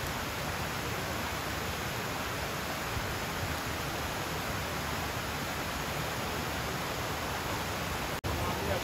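Leaves rustle steadily in a light wind.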